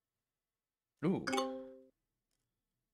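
A short electronic chime rings.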